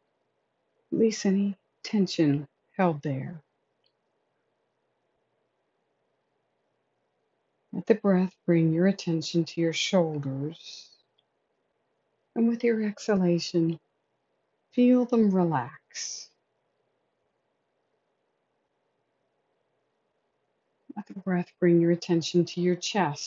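A woman reads aloud calmly and close by, with pauses.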